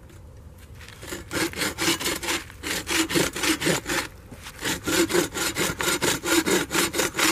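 A hand saw cuts back and forth through wood with a fast, rasping rhythm.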